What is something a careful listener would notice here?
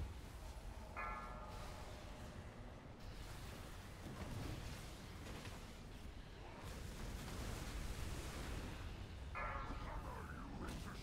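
A bright chime rings out.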